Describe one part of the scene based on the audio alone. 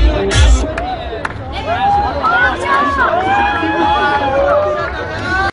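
A large crowd of men and women shouts and chants.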